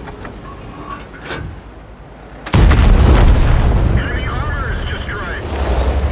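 A heavy tank engine rumbles low.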